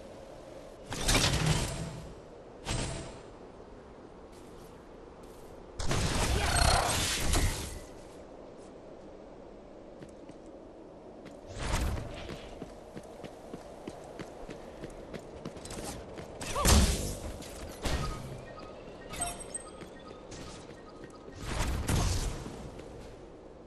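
Energy shots blast and whoosh in loud bursts.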